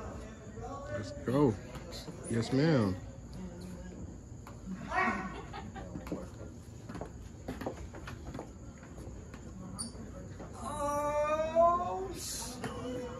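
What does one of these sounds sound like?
A young woman speaks breathily, close by.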